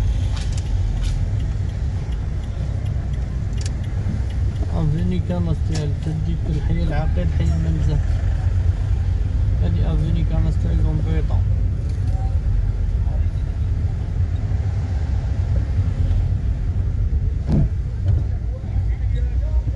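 A car engine hums steadily, heard from inside the moving car.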